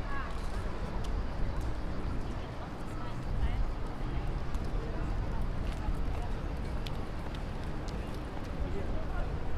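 Footsteps tap faintly on pavement.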